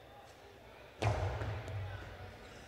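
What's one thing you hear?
A hard ball smacks against a wall with a sharp crack, ringing in a large echoing hall.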